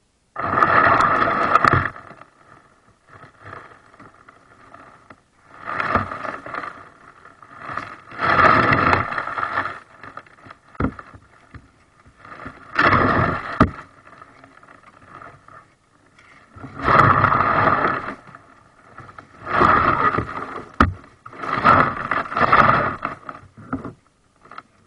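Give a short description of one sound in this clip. A plastic kayak hull scrapes and grinds over gravel in bursts.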